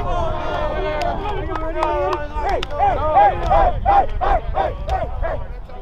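A group of young men shout and cheer together close by.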